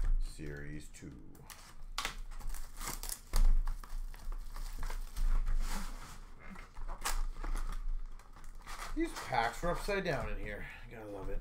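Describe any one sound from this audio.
Cardboard boxes rustle and knock as they are handled.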